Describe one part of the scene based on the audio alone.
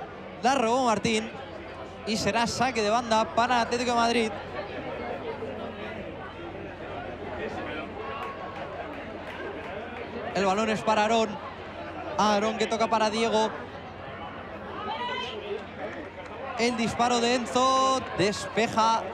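Spectators shout and cheer loudly outdoors.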